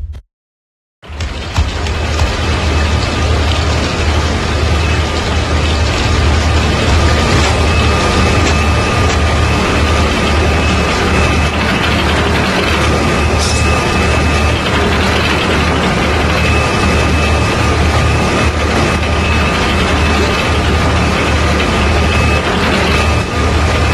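Steady video game music plays with a low throb.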